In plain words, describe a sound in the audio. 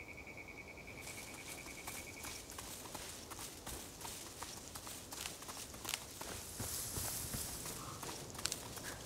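Footsteps rustle through dry undergrowth.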